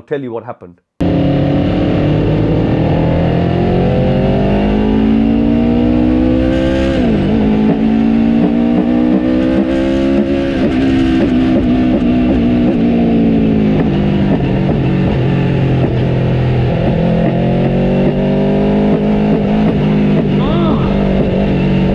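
A motorcycle engine roars at high revs, rising and falling as it changes gear.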